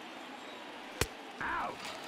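A pitched baseball smacks into a glove.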